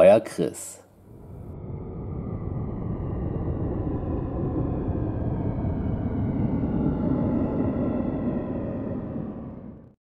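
A man laughs with a deep, menacing cackle.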